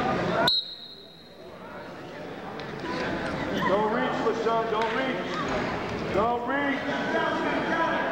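Shoes squeak and thud on a wrestling mat.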